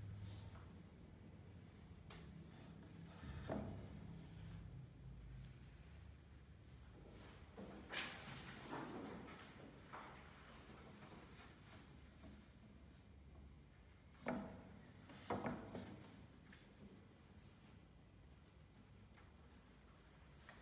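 A fine-tipped paintbrush strokes softly across a wooden panel.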